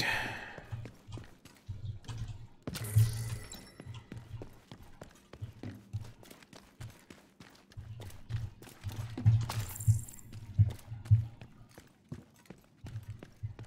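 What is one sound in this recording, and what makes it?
Footsteps thud and scrape on a hard floor.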